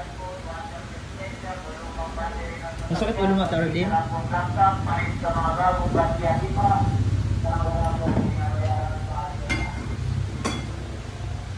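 A woman speaks quietly and sadly close by.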